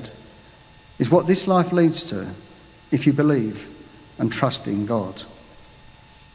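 A man reads aloud calmly through a microphone in a large, echoing room.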